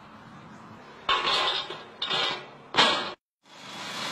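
A heavy metal manhole lid scrapes and clanks on its frame.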